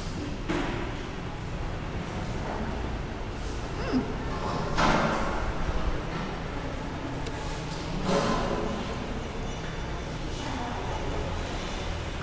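A young woman chews and smacks her lips close by.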